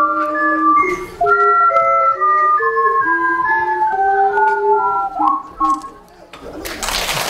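Several ocarinas play a melody together.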